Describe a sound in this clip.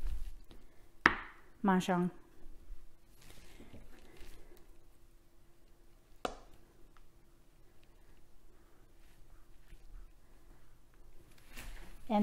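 Hard tiles click and clack as a hand sets them down.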